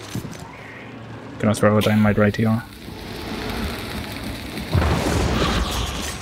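A flare hisses as it burns.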